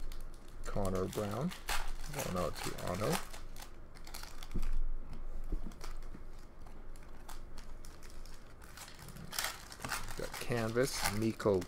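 Trading cards rustle and slide in hands.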